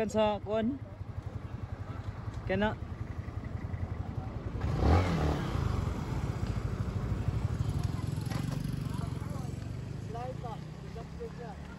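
A motorcycle engine idles with a steady low putter nearby.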